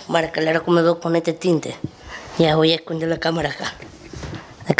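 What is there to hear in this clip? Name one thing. A boy talks close up with animation.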